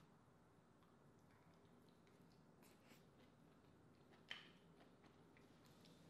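A woman chews and slurps food close to a microphone.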